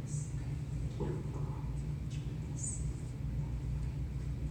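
A young woman speaks calmly.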